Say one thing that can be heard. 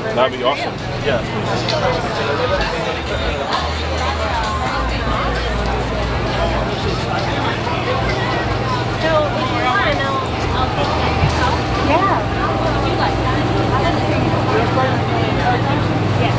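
A crowd of men and women chatter outdoors all around.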